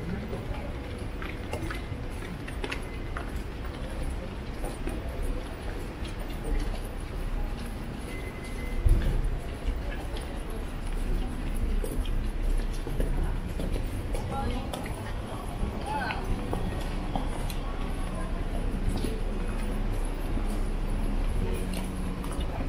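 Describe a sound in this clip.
A busy street hums with a steady background of city noise.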